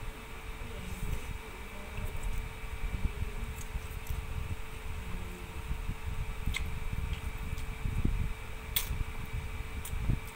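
A man slurps noodles loudly, close by.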